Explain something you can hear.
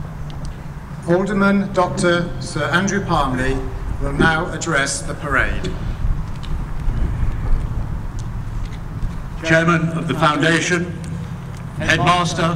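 An elderly man speaks calmly through a loudspeaker outdoors.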